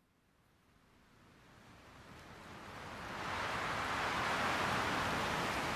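Gentle sea waves wash in, growing steadily louder.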